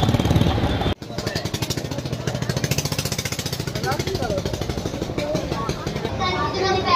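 A crowd chatters in a busy market.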